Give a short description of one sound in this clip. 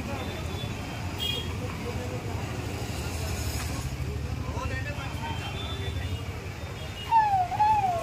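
Traffic hums along a busy street.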